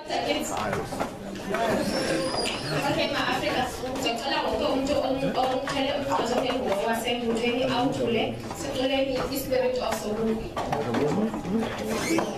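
A young woman speaks steadily through a microphone in a large echoing hall.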